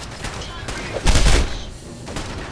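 A heavy metal gate slides shut with a loud clang.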